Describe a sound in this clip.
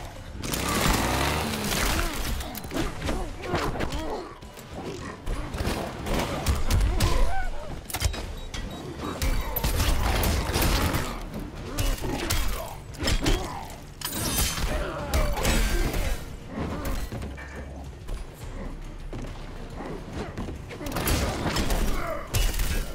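Punches and blows land with heavy thuds.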